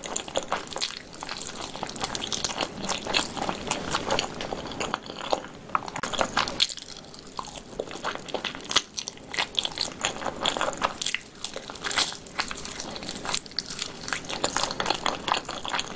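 Metal tongs clink against a plate.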